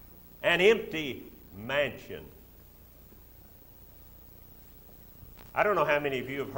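An elderly man speaks slowly and with emphasis into a microphone in a large hall.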